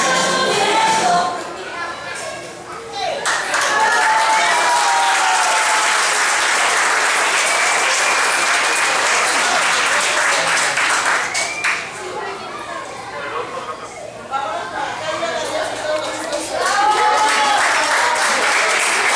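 Young children chatter and shout excitedly nearby.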